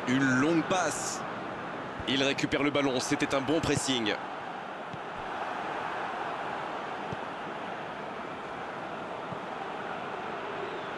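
A stadium crowd murmurs and roars steadily in a large open space.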